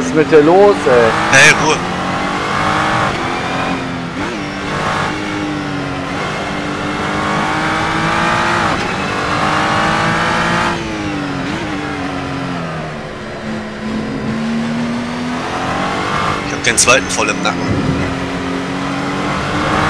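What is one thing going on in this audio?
A race car engine roars loudly, revving up and down through gear changes.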